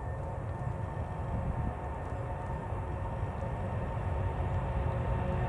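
A jet airliner's engines roar loudly as it speeds down the runway.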